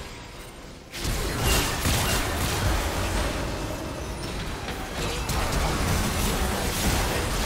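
Game spell effects burst and crackle during a fight.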